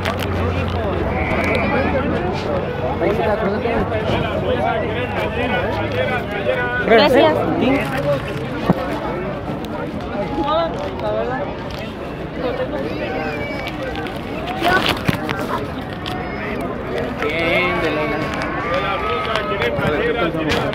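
A crowd of adults chatters outdoors, voices overlapping.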